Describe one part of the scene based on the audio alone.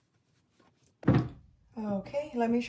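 A boot thumps down onto a hard surface.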